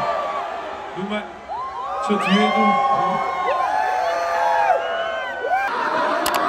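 A crowd cheers and screams nearby.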